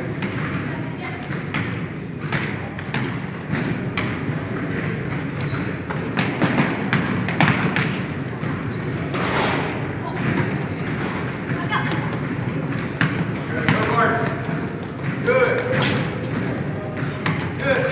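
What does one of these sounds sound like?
Basketballs bounce and thud on a hard floor in a large echoing hall.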